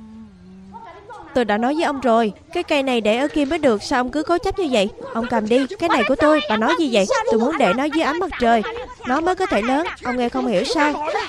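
A middle-aged woman shouts back loudly.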